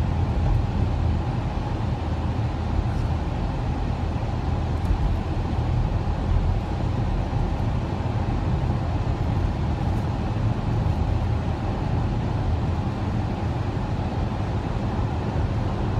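A car's engine hums steadily, heard from inside the car.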